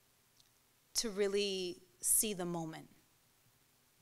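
A woman speaks expressively into a microphone.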